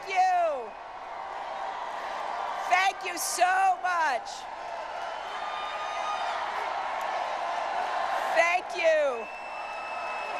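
People in the crowd whoop and shout loudly.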